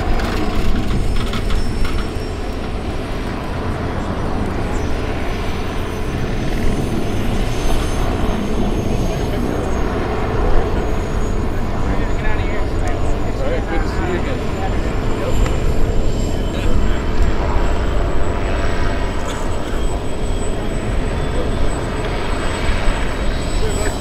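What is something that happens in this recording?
A blimp's engines drone steadily overhead.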